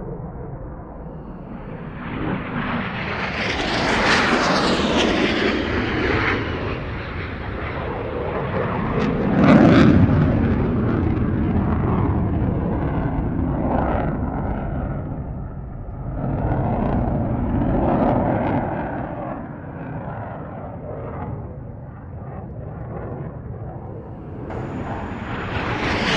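A jet engine roars steadily as a fighter plane flies past, rising and falling in loudness.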